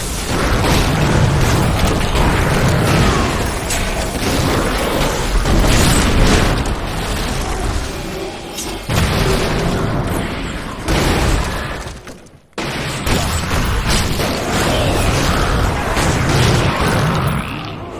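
Magic blasts and combat impacts crash and boom in quick bursts.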